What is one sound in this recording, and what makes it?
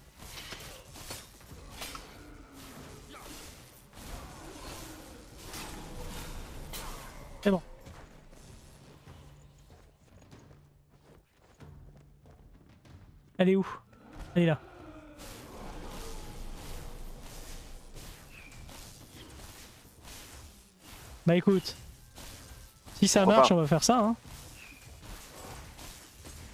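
Weapons clash and magic bursts crackle in a close fight.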